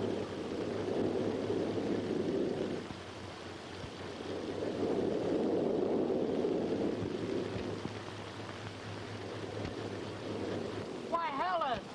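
A 1930s car drives up with its engine running.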